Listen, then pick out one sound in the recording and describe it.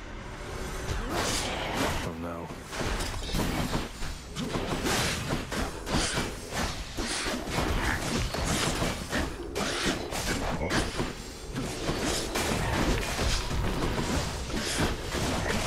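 Game combat effects crash and whoosh in quick bursts.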